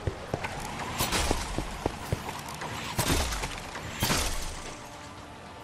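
Arrows whoosh through the air.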